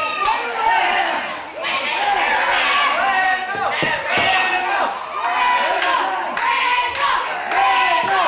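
A wrestler's blows thud on an opponent lying on a ring mat.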